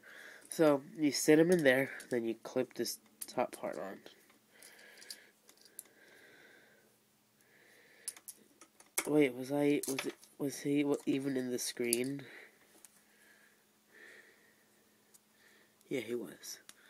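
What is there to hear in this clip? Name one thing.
Plastic toy bricks click and rattle as they are handled.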